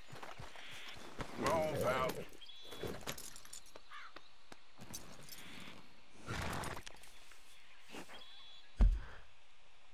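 A horse's hooves clop on the ground.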